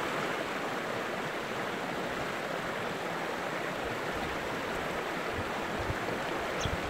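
Water rushes steadily over rocks into a pool.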